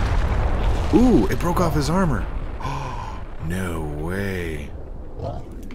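A man speaks through a close microphone.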